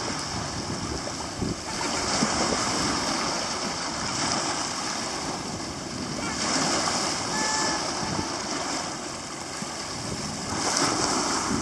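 Small waves wash and break onto a pebble shore.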